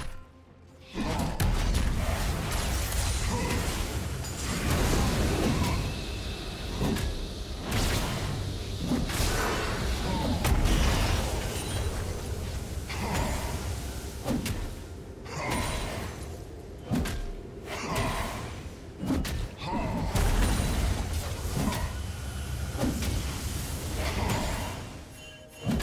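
Weapons clash and strike repeatedly in a video game fight.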